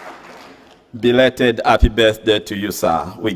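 A man speaks calmly into a microphone, his voice carrying through a large echoing hall.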